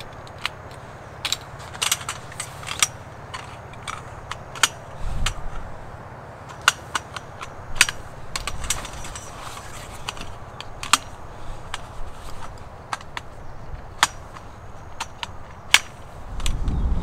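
Metal tent poles click and clatter as they are snapped together.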